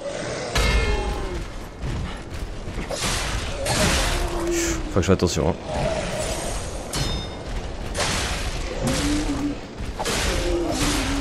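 Swords clash and strike in quick fighting.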